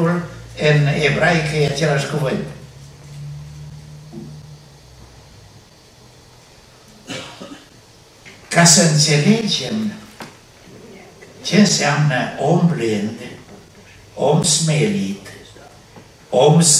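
An elderly man speaks with emphasis through a microphone, in pauses.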